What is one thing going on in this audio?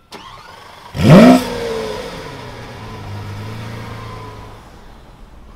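A sports car engine starts with a sudden loud roar, then settles into a low rumbling idle.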